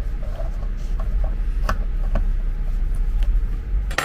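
A button on a plastic case clicks when pressed.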